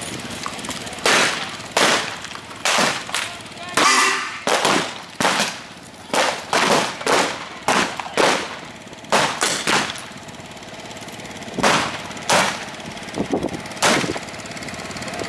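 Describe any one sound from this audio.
A man speaks loudly outdoors in short bursts.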